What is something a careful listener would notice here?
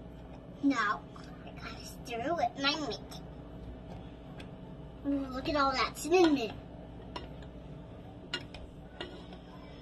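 A spoon clinks and scrapes against a metal pot.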